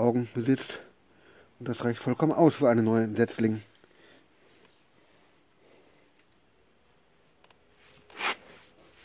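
Hands pull apart roots, with soil softly crumbling and rustling.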